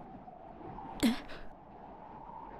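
A young woman gives a short, puzzled sound.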